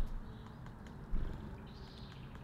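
A small bird flutters its wings as it takes off.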